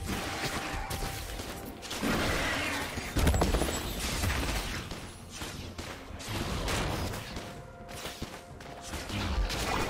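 Heavy hits thud against a large monster.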